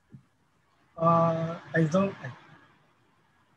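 A man speaks briefly and softly over an online call.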